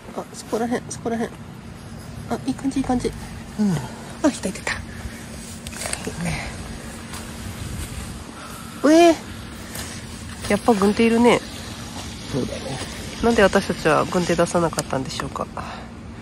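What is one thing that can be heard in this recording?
A young man talks quietly close by.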